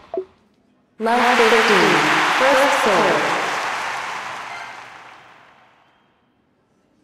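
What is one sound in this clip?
A crowd cheers and applauds loudly, then fades.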